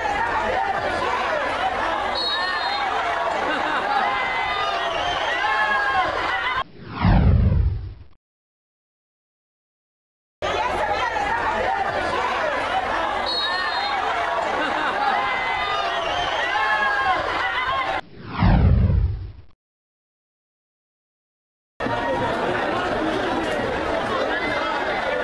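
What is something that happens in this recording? A large crowd cheers and chants in an open stadium.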